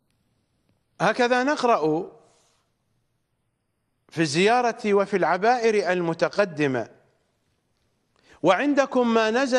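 A middle-aged man speaks with animation into a close microphone, in bursts with pauses.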